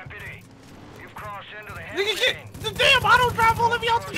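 A pistol fires several shots in quick succession.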